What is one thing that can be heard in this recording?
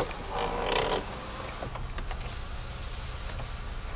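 A car door unlatches with a click and swings open.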